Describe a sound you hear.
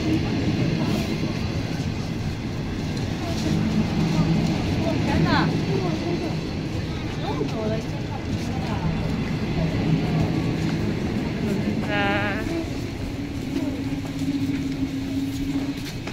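A passenger train rumbles and clanks slowly past close by.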